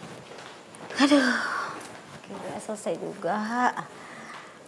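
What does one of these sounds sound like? A young woman groans and whines in frustration close by.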